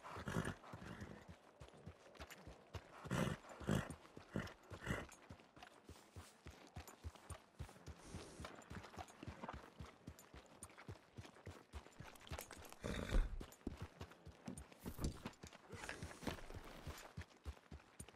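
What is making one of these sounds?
Horse hooves thud steadily on muddy ground.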